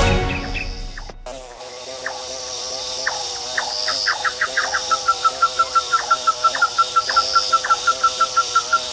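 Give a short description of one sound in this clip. A bee buzzes as it flies.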